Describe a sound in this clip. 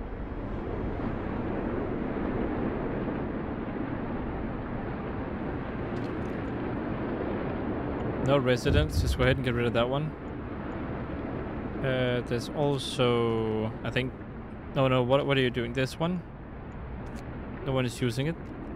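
A cold wind roars steadily.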